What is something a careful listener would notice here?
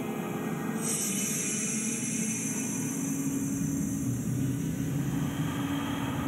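A sealed pod hisses loudly as cold gas fills it.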